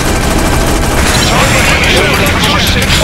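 Explosions burst and crackle nearby.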